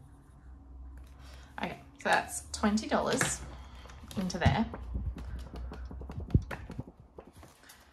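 A paper card rustles as it is pulled from a binder.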